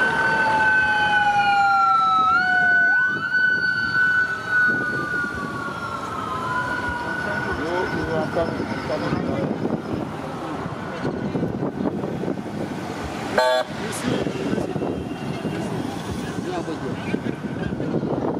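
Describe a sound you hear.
Car engines hum as vehicles drive past.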